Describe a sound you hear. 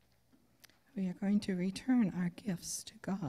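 An older woman reads out calmly through a microphone in an echoing room.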